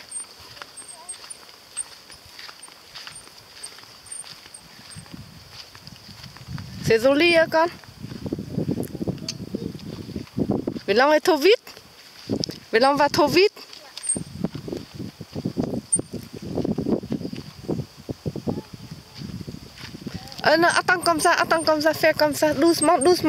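Small bike wheels roll over a dirt path.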